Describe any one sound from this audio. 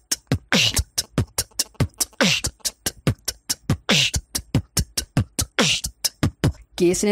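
A young man beatboxes a fast, punchy rhythm into a close microphone.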